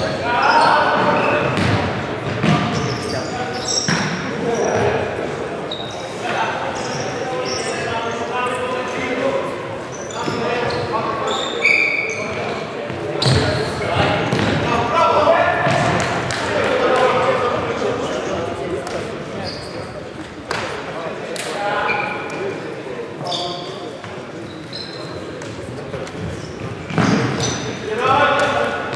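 Young men shout to each other in a large echoing sports hall.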